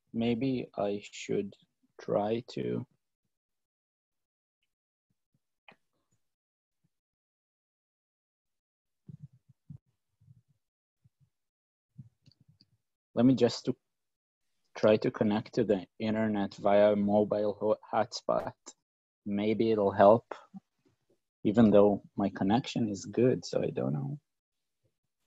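A young man speaks calmly into a microphone, heard as through an online call.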